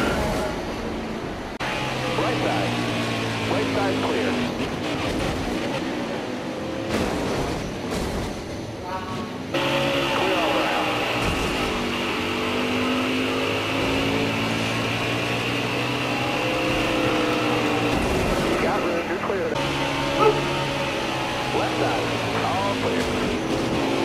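Racing car engines roar and whine at high speed.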